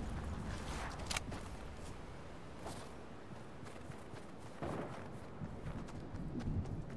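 Footsteps crunch softly over sand and grass.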